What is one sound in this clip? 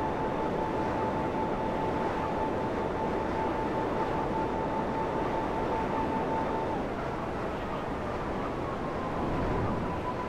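A jet-powered hoverbike roars steadily as it flies.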